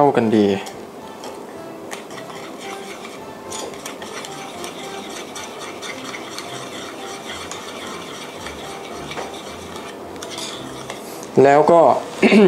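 A spoon scrapes and stirs in a small metal bowl.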